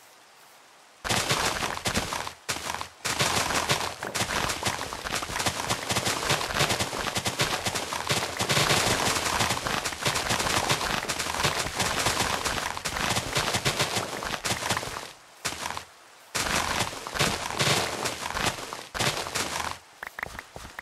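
Leaves rustle and crunch as blocks are broken quickly, one after another.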